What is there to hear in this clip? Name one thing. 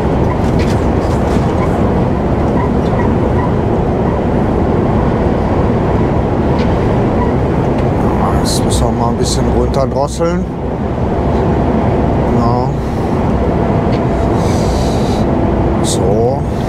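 A truck engine drones steadily at highway speed.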